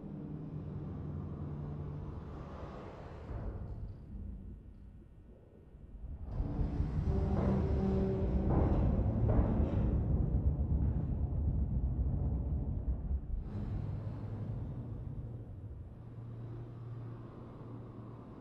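A large fan whirs with a low, steady hum.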